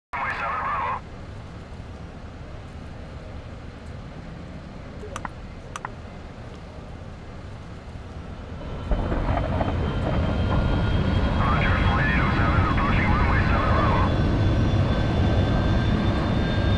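A jet engine hums steadily and grows louder.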